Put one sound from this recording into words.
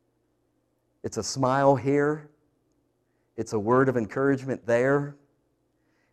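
A middle-aged man speaks with animation through a lapel microphone, in short bursts with pauses.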